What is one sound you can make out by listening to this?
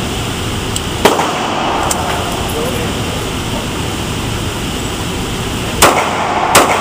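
A pistol fires loud shots that echo in an enclosed room.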